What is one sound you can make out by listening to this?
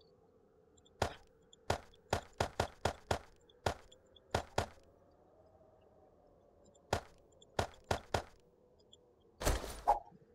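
Short clicks tick rapidly one after another.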